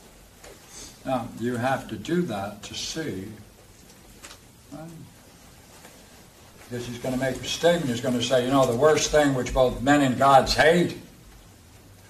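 An elderly man lectures calmly.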